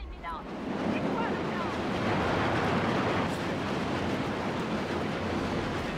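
Wind roars loudly and steadily past a plane in flight.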